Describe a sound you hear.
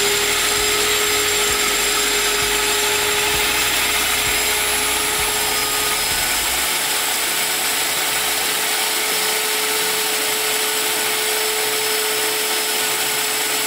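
A spray gun hisses steadily as it sprays into a bucket.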